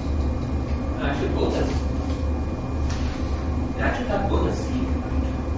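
A man speaks briefly and quietly.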